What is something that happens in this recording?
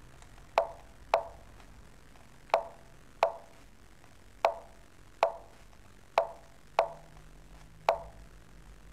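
Short sharp clicks of chess pieces being placed sound every second or so.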